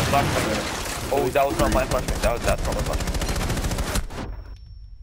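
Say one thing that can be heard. Rapid gunshots rattle in bursts.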